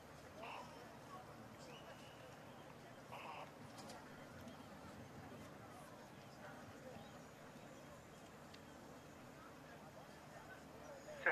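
A large crowd murmurs steadily in an open stadium.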